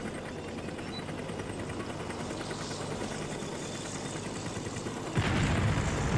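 A helicopter flies overhead.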